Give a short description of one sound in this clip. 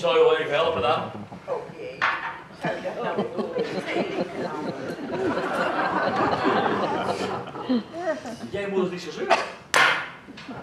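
A woman speaks on a stage, heard from the audience in a hall.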